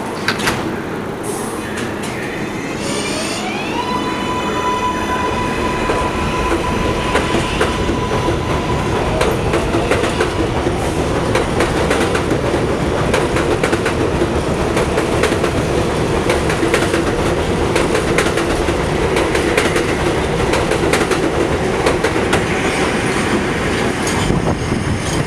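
A subway train rumbles and clatters over the rails, growing louder as it speeds up.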